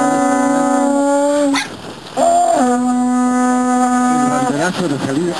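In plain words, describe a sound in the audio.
A horn blows long, steady notes up close.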